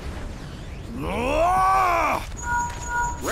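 A man lets out a deep, drawn-out grunt close by.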